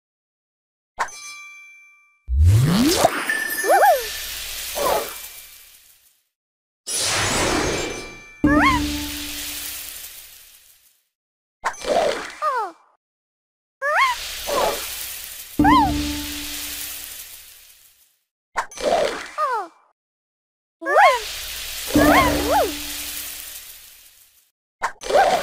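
Cheerful game chimes and pops play in short bursts.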